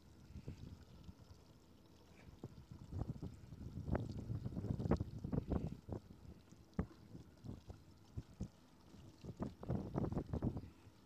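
Water laps and splashes against a boat's hull.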